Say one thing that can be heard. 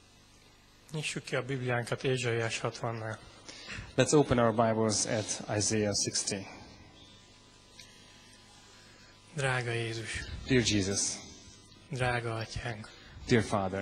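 A man speaks calmly through a microphone and loudspeakers.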